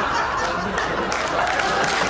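An older man laughs heartily.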